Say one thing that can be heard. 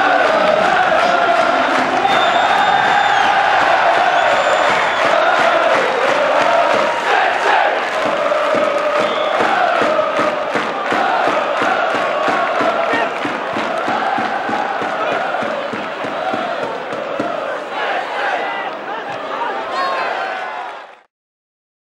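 A large crowd chants and cheers loudly outdoors.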